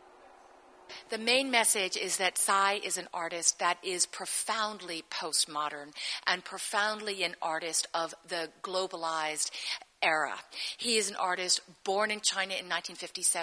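A woman speaks with animation into a microphone, close by.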